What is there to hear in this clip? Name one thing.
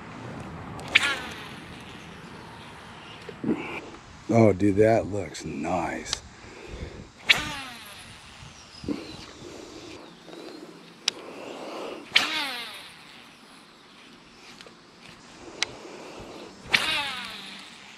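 A fishing reel whirs as line pays out.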